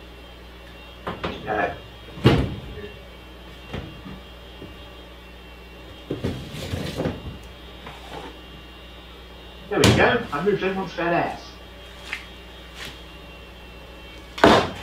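Objects knock and rustle as a man handles them.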